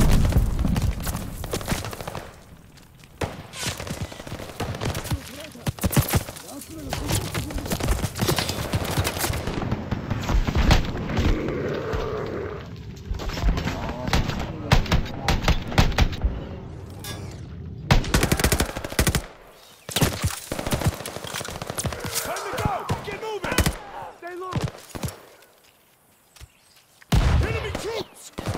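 Footsteps rustle through dense undergrowth.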